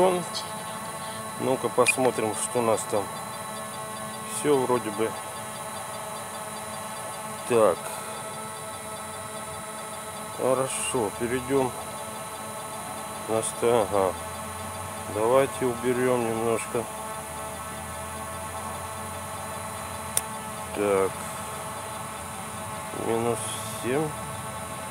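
A small drone's propellers hum steadily close by.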